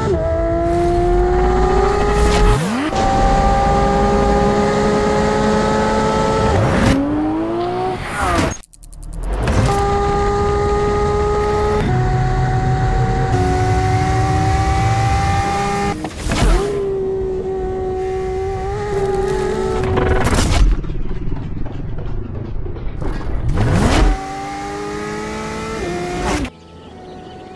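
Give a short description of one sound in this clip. A race car engine roars at high revs, climbing and dropping in pitch through gear changes.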